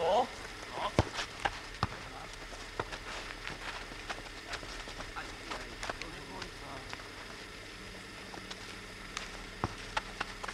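A football is kicked outdoors.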